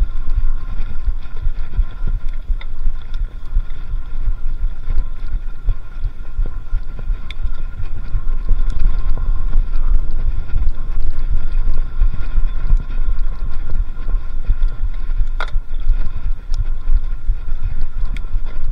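Bicycle tyres roll over a bumpy dirt track.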